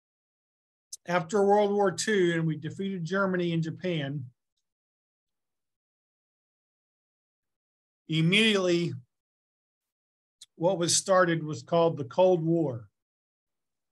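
A man talks calmly and close into a microphone, in short bursts with pauses.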